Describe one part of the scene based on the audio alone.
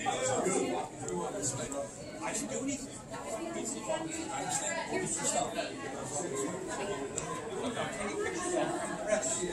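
A crowd of men and women talk and murmur all around in an echoing hall.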